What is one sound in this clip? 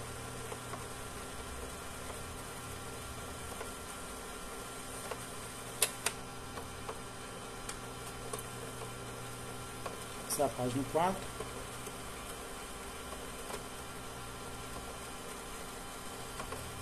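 A printer hums steadily as it feeds out paper.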